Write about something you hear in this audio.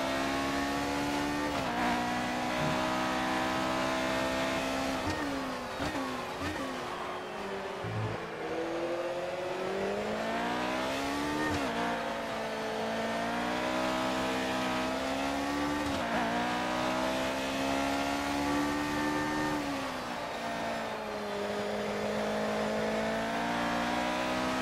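A racing car engine screams at high revs, dropping sharply on each gear change and climbing again.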